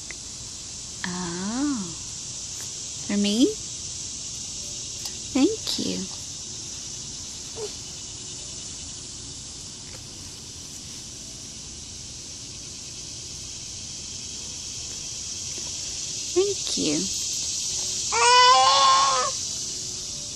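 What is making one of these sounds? A baby girl babbles and squeals close by.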